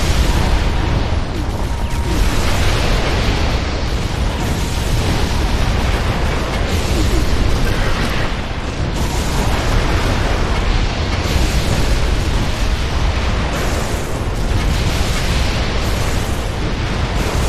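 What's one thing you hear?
Defensive gun turrets fire rapid laser and gun blasts.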